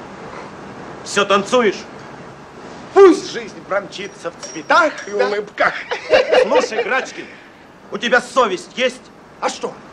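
A young man talks and laughs with animation.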